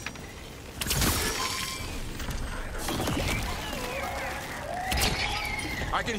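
Arrows whoosh and strike in a game battle.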